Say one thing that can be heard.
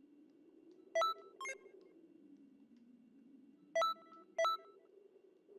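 Short electronic chimes ring out a few times.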